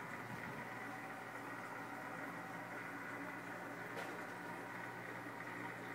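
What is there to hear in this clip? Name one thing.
Water bubbles and gurgles steadily.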